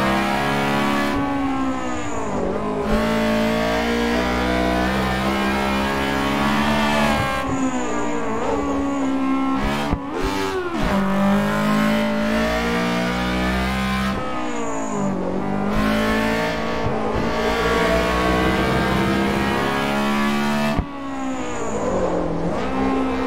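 A small car's engine revs hard, rising and dropping in pitch with each gear change.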